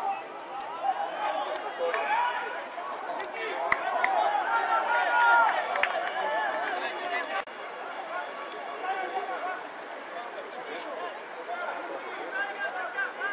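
Young men shout and call out to one another outdoors.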